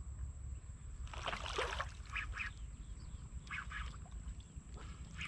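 A hooked fish splashes in shallow water.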